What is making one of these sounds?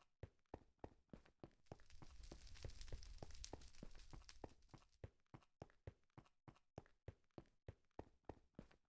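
Blocks of stone crunch in quick, steady succession as they are dug through.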